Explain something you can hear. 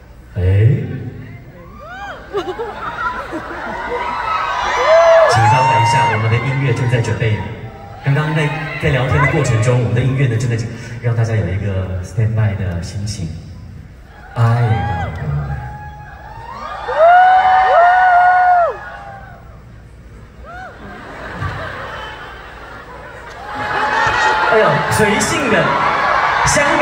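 A young woman talks cheerfully.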